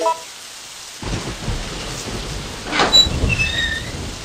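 A heavy iron gate creaks open.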